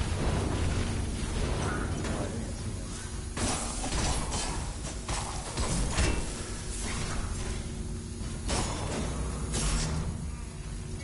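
Heavy blows and metallic impacts thud in quick bursts.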